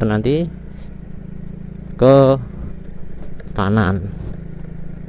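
A motorcycle engine revs briefly in short, sharp bursts.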